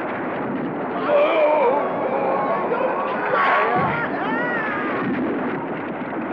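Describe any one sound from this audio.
Men shout and grunt as they struggle.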